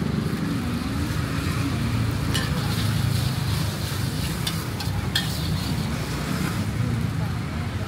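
A metal spatula scrapes and clinks against a wok.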